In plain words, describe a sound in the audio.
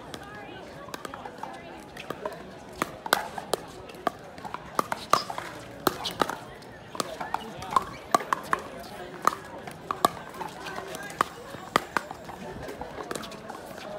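Paddles strike a plastic ball with sharp hollow pops.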